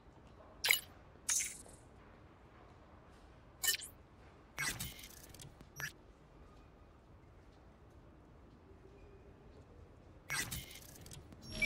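Short electronic interface clicks and chimes sound now and then.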